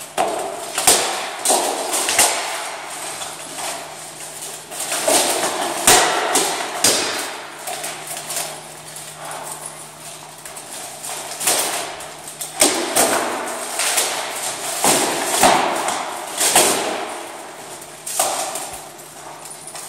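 Practice swords strike steel plate armor with sharp clacks in an echoing hall.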